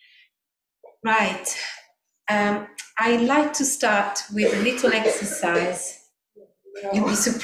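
A woman sings into a microphone, close by.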